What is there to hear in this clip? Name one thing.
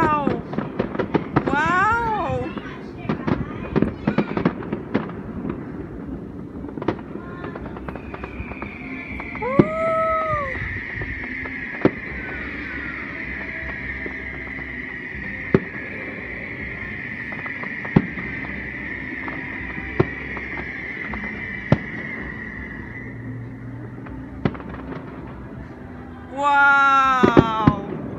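Firework rockets whistle as they rise.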